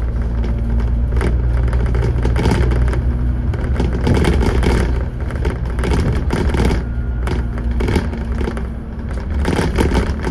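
A bus engine rumbles steadily at low pitch.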